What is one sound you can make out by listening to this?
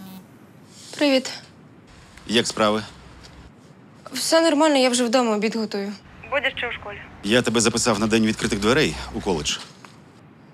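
A man speaks on a phone.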